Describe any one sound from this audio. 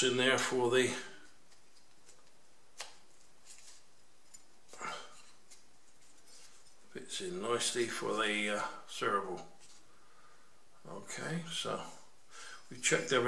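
An elderly man speaks calmly and close by, in short bursts with pauses.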